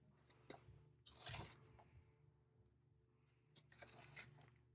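A tin box rattles as a hand lifts it from a shelf.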